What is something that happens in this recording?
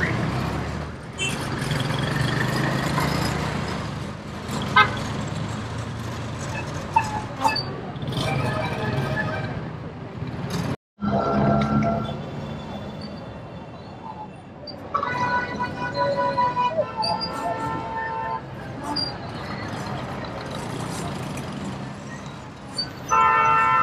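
A three-wheeled motor taxi's engine putters close by.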